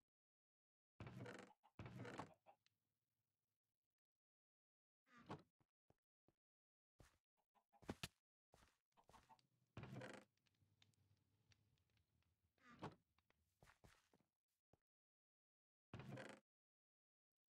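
A wooden chest creaks open and thuds shut several times.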